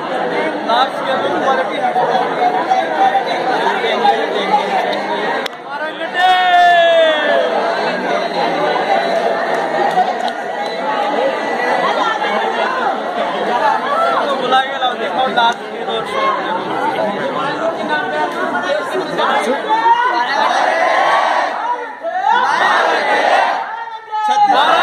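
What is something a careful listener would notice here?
Young men shout and whoop loudly.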